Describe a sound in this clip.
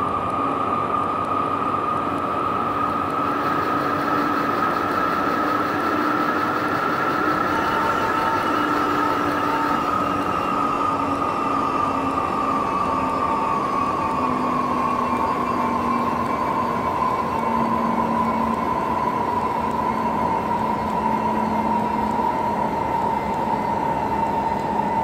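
An electric train motor whines steadily and slowly drops in pitch.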